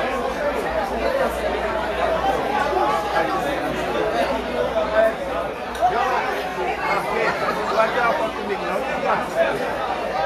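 A large crowd of young men and women chatters and shouts loudly outdoors.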